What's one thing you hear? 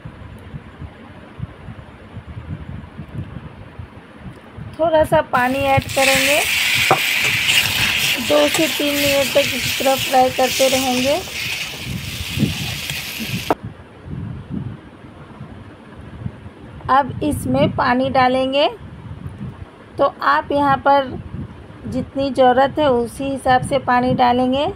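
A metal spatula scrapes and stirs thick food in a pan.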